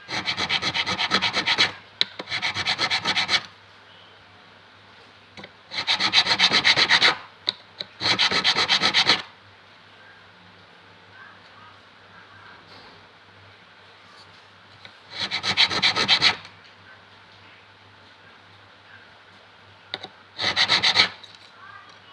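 A file scrapes rhythmically across a metal fret in quick rasping strokes.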